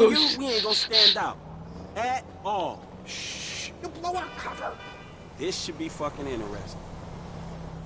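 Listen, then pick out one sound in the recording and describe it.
Two young men talk to each other with animation.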